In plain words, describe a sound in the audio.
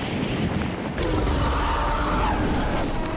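A glider unfolds with a whoosh.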